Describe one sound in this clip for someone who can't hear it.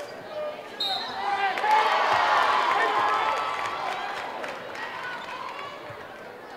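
A large crowd cheers and shouts in an echoing gym.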